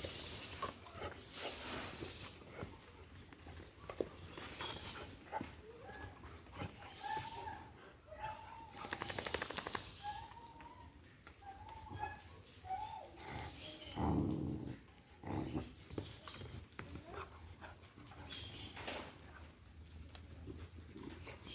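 Paws scuffle on dry dirt.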